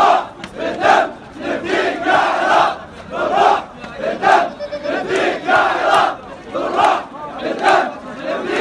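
A large crowd of men chants loudly in rhythm outdoors.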